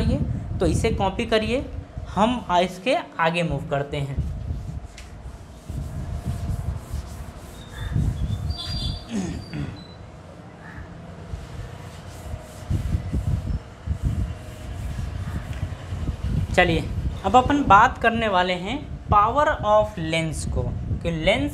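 A young man speaks clearly and calmly, close by, like a teacher explaining.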